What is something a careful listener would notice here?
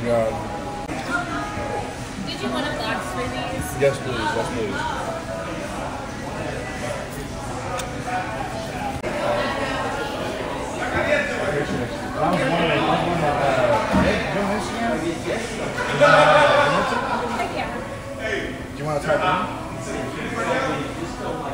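A young man talks close by with animation.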